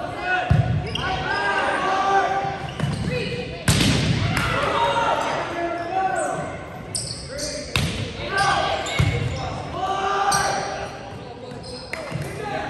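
Players and spectators shout and call out with animation throughout the gym.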